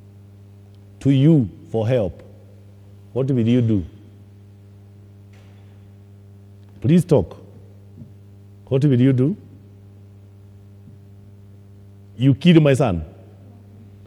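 A man speaks with animation in short bursts through a microphone in an echoing hall.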